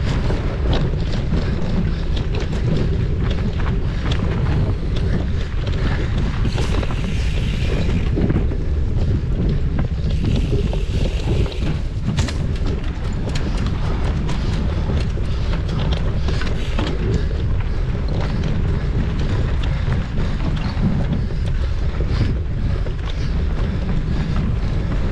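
Wind buffets a microphone in a steady low rumble.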